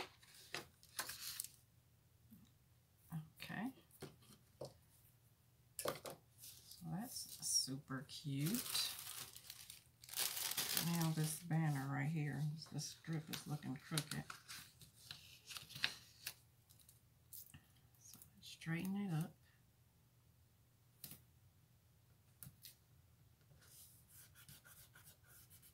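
Stiff paper pages rustle and flap as they are handled.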